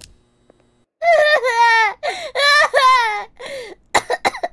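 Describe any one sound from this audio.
A young woman squeals loudly and excitedly.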